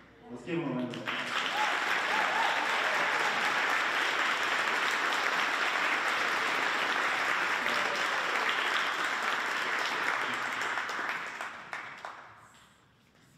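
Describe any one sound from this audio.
A crowd applauds loudly in a large echoing hall, then the clapping dies away.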